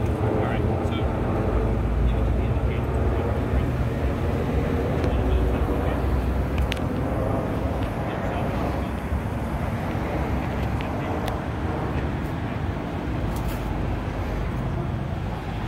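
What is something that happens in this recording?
A car engine idles nearby with a low rumble.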